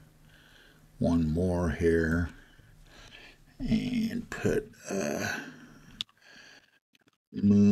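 A man speaks calmly into a microphone, in short phrases.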